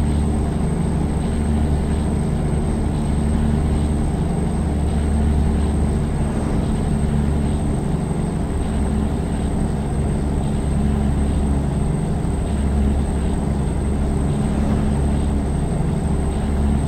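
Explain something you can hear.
A diesel semi truck engine drones while cruising.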